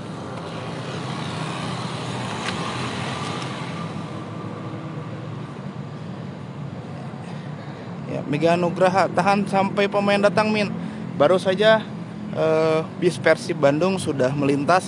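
Traffic rumbles along a nearby road.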